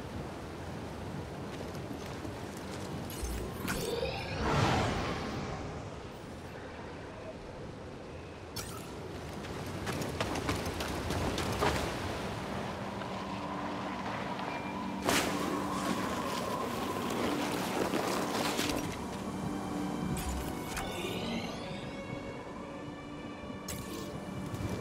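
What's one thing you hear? Water rushes and splashes steadily nearby.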